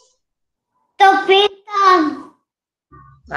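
A young boy speaks through an online call.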